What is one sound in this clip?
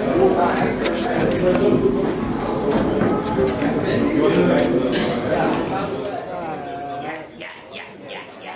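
A crowd of people chatters.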